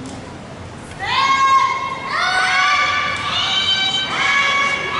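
Young women give loud, drawn-out shouts in an echoing hall.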